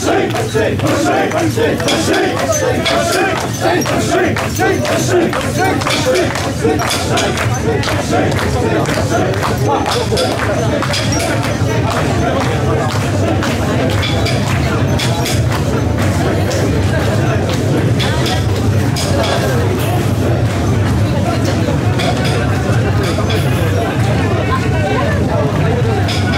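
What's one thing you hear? A large outdoor crowd chatters and calls out loudly.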